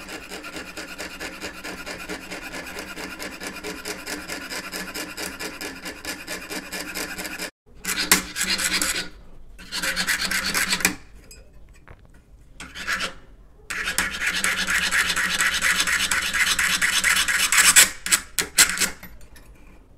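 A fine saw blade rasps rapidly back and forth through a workpiece.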